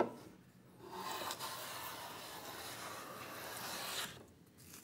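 A hand plane shaves along the edge of a wooden board with long, hissing strokes.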